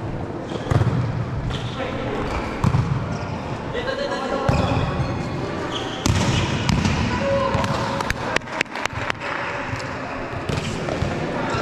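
Players call out to each other in a large echoing hall.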